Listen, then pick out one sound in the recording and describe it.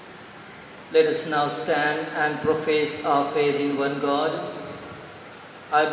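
A man chants steadily through a microphone in an echoing hall.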